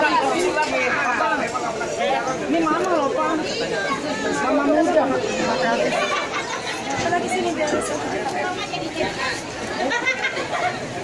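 Several young women talk and chatter close by.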